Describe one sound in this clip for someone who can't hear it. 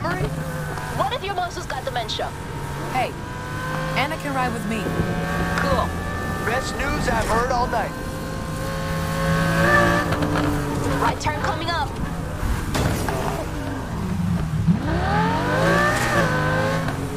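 A sports car engine roars at high revs as the car speeds along.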